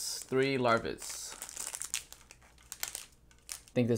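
A plastic bag crinkles close by.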